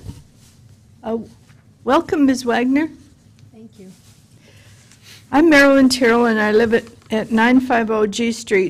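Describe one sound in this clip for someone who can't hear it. An elderly woman speaks steadily into a microphone.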